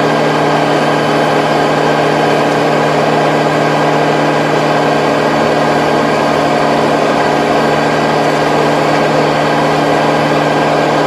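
A rotary tiller churns through soil.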